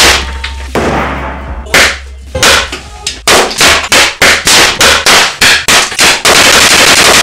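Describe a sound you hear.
Small electrical components burst with sharp loud bangs.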